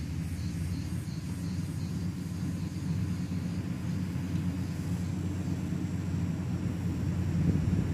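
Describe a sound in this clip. A grader blade scrapes over dirt.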